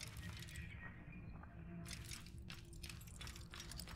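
Footsteps tread softly on stone.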